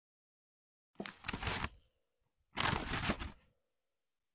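A tissue rustles and crinkles close by.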